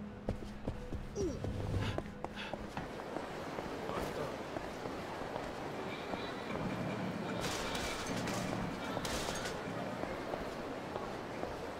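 Footsteps tap on paving outdoors.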